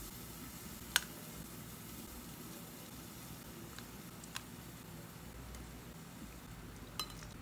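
Metal tongs clink softly against a ceramic plate.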